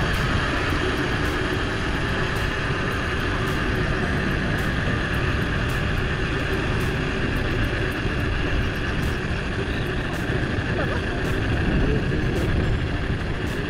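Wind rushes and rumbles steadily past a moving bicycle.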